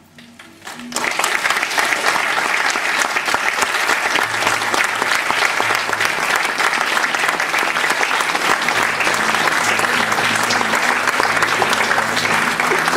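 A guitar ensemble suddenly bursts into loud, fast strumming.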